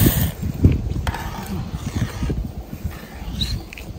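A metal ladle stirs and scrapes in a pot of broth.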